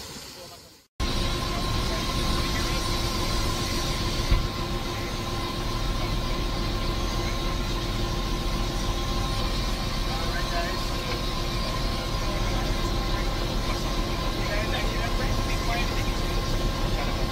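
A helicopter engine and rotor drone loudly and steadily.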